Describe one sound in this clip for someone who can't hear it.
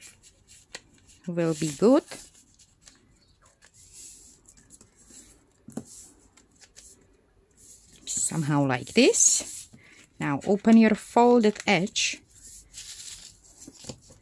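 Newspaper rustles and crinkles as it is folded and pressed flat.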